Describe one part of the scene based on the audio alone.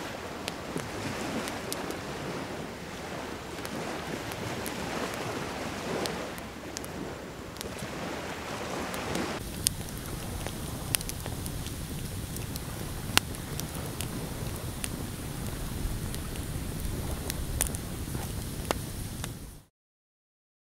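A campfire crackles and pops nearby.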